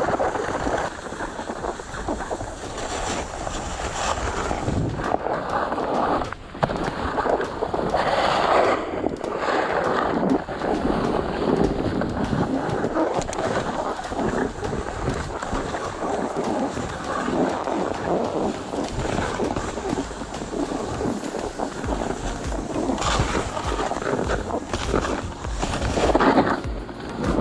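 A snowscoot's boards scrape and hiss over packed, rutted snow while riding downhill.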